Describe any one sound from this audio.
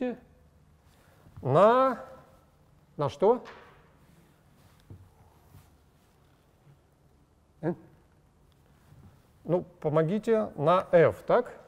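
A middle-aged man speaks calmly, pausing between phrases.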